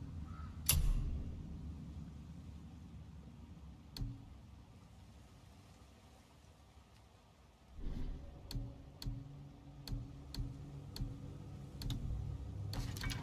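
Short interface clicks sound as menu selections change.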